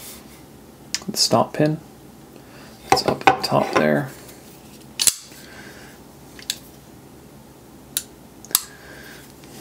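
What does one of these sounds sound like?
Metal knife parts click and snap as they are handled.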